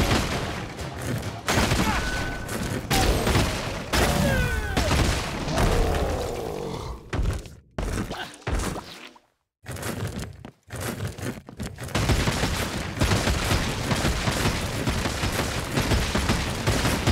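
Game sound effects whoosh and crash as magic attacks strike.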